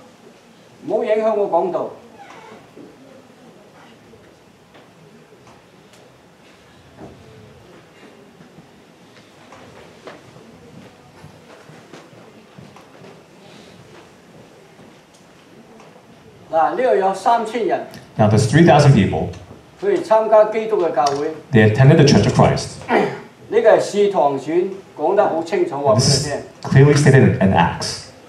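A young man speaks through a microphone in an echoing room.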